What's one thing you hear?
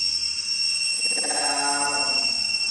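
A baby monkey whimpers softly close by.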